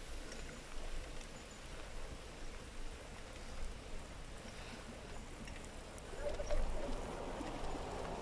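Bicycle tyres hum on wet tarmac.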